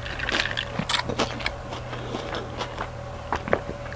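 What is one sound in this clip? A man sips a drink close to a microphone.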